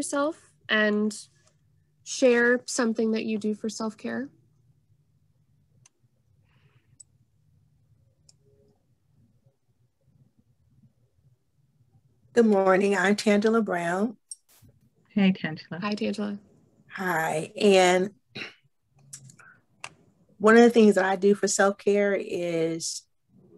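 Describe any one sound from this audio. A woman speaks calmly through an online call, pausing now and then.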